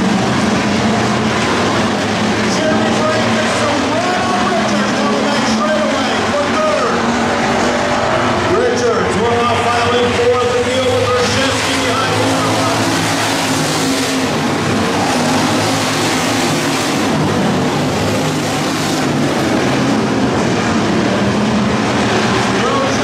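Race car engines roar and drone loudly outdoors.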